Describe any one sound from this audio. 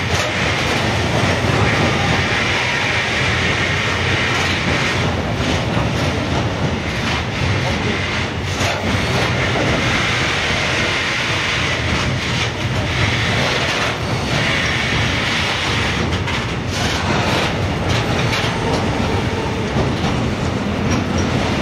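Steel wheels clatter and squeal over the rail joints.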